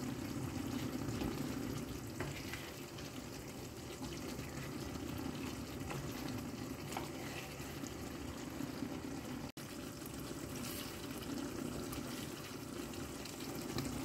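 A spoon stirs and scrapes through the sauce in the pan.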